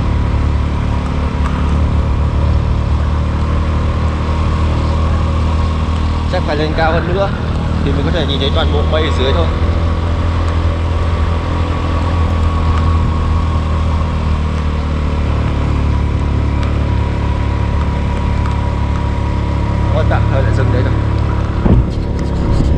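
A vehicle engine hums steadily while driving along a road.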